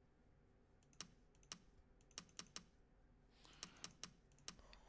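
Short soft menu clicks tick one after another.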